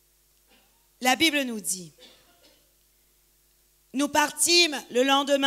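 A woman speaks calmly into a microphone, heard through loudspeakers in a large echoing hall.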